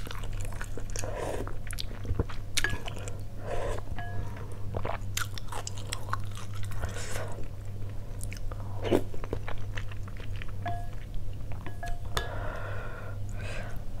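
A woman slurps noodles loudly.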